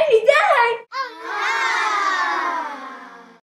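A young boy calls out close up in a long, falling voice.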